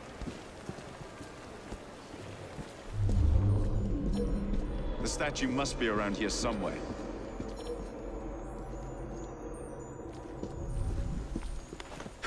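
Footsteps tread on cobblestones.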